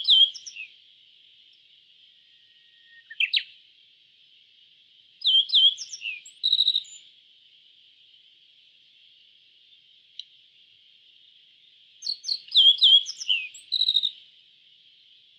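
A small bird sings short bursts of high, chirping song, with quiet pauses in between.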